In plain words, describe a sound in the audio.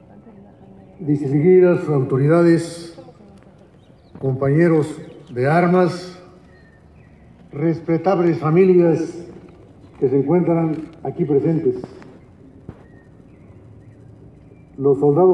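A man speaks slowly and formally through a loudspeaker outdoors, with pauses between phrases.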